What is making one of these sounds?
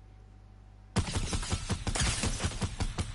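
Rapid gunshots fire close by.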